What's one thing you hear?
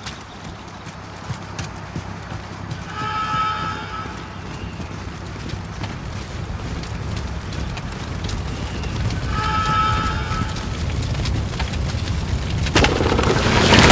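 Fire crackles and roars close by.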